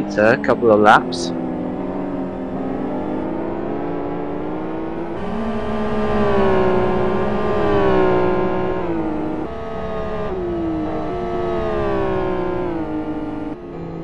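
A racing car engine drones steadily at high revs and climbs slowly in pitch.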